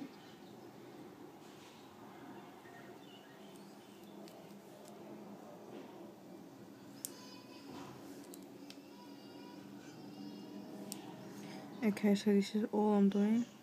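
A brush strokes softly across a fingernail.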